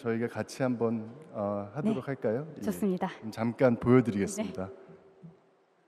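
A man speaks clearly into a microphone.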